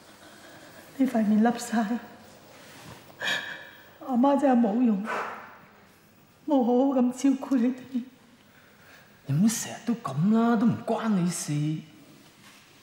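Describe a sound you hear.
A man speaks softly and emotionally up close.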